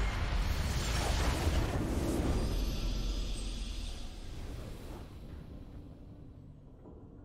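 A game's victory fanfare swells and fades.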